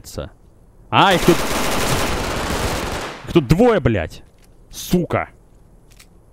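Electricity crackles and zaps loudly in short bursts.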